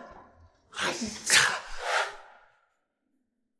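A young man exclaims in surprise close by.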